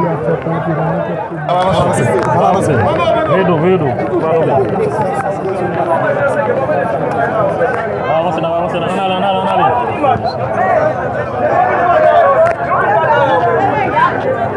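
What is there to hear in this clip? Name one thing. A man speaks up with animation close by.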